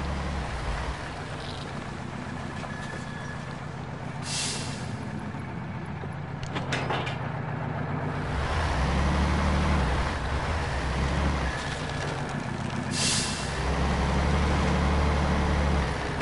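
A heavy truck engine rumbles low and revs up and down.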